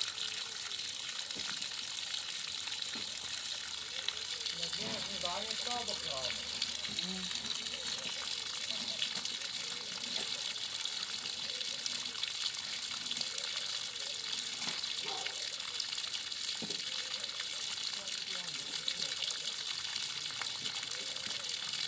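Water sprays steadily from a hose sprinkler onto the ground.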